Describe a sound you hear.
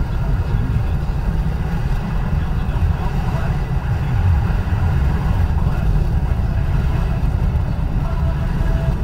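A car's engine hums steadily from inside.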